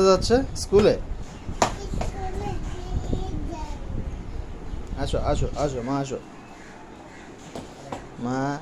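A small child talks and babbles close by.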